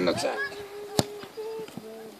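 A foot kicks a ball with a sharp thud.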